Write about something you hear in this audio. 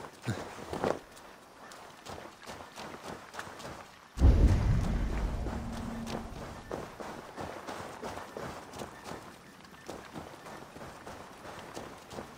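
Footsteps tread steadily on soft ground.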